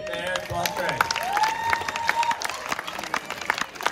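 A small group of people claps their hands.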